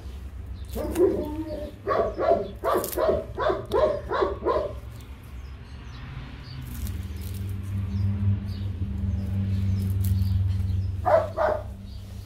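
A paper towel rustles and crinkles in someone's hands.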